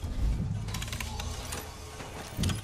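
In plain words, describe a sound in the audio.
Electronic beeps and clicks come from a machine's keypad.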